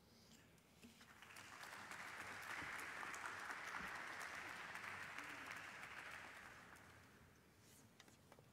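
An audience applauds loudly, then the applause fades.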